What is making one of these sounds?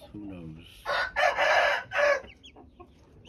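A chicken squawks loudly.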